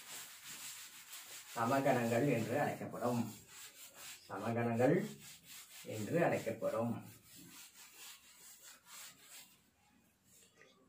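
A cloth rubs and wipes across a chalkboard.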